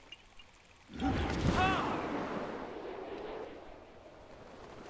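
A loud magical blast bursts and rings out.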